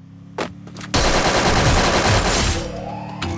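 A rifle fires in a rapid burst of loud shots.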